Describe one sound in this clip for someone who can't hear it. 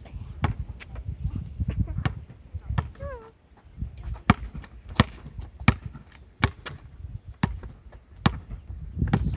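A basketball bounces sharply on an outdoor court, again and again.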